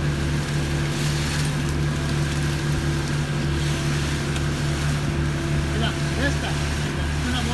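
A concrete pump engine drones steadily nearby.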